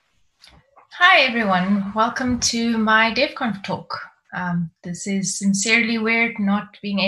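A woman speaks calmly through a microphone on an online call.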